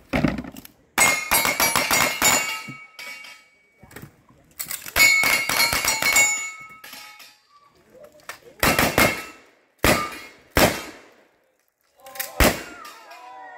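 Gunshots crack loudly outdoors, one after another.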